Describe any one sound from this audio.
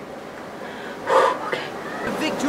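A young woman speaks briefly and calmly, close to a microphone.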